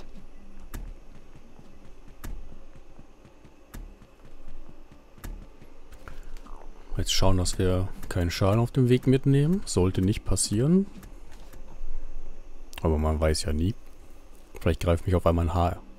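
A small figure's footsteps tap on a stone floor.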